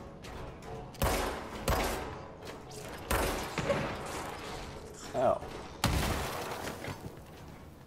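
Loud gunshots and blasts ring out in bursts.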